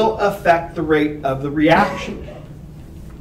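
A man speaks with animation in a room with a slight echo.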